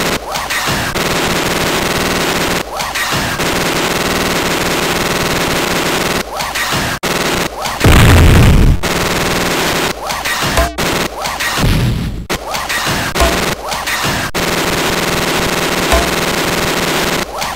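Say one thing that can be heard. Video game gunfire crackles in rapid bursts.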